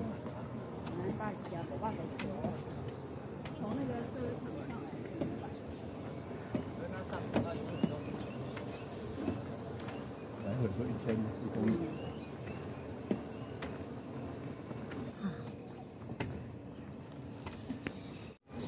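Footsteps tap on a walkway.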